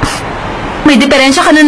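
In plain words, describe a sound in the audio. A young woman speaks, sounding annoyed.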